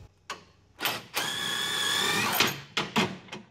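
A power impact driver whirs and rattles on a bolt.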